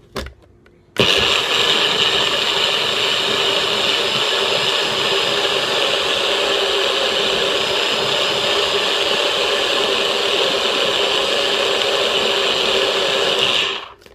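A small appliance motor runs with a loud, steady whir.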